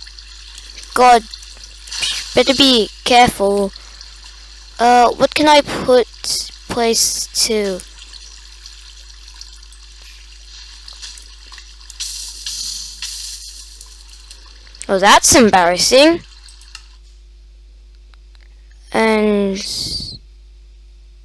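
A boy speaks with animation close to a microphone, in short loud bursts.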